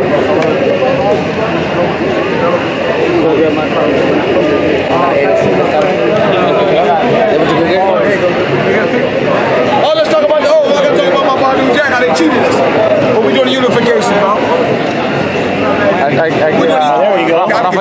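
A crowd chatters loudly all around in an echoing hall.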